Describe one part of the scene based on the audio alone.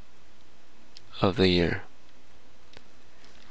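Soft menu clicks sound as a selection moves.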